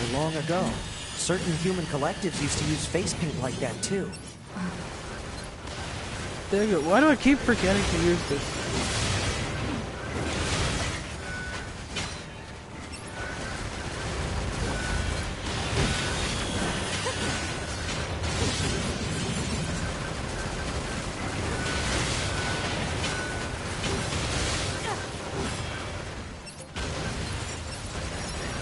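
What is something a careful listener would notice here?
Metal crashes and bursts of debris ring out in a fierce battle.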